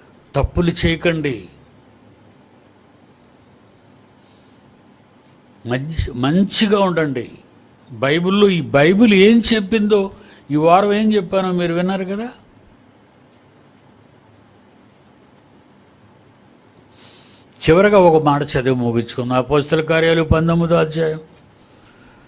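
An elderly man speaks slowly and expressively into a close microphone, with long pauses.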